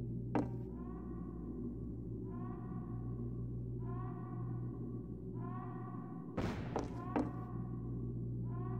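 Footsteps thud on a creaky wooden floor.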